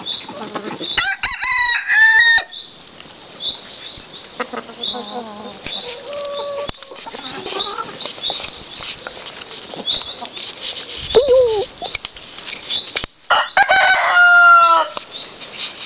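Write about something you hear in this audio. A rooster crows loudly.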